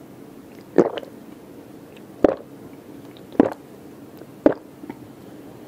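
A woman gulps water loudly close to a microphone.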